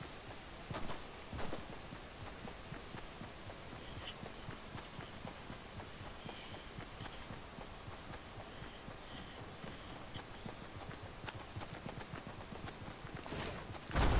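Footsteps run quickly over grass and ground.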